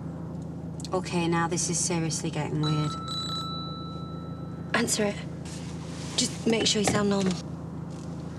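A young woman speaks inside a car.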